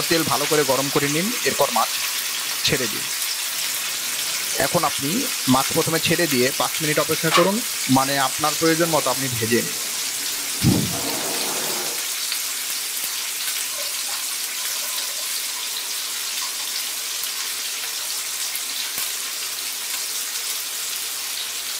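Oil sizzles and crackles steadily in a frying pan.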